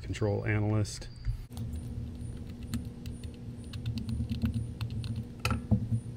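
A small screwdriver clicks faintly as it turns screws.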